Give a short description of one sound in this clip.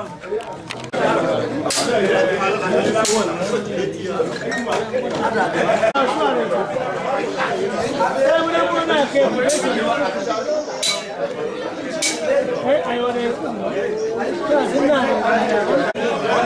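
Several men sing and call out loudly together close by.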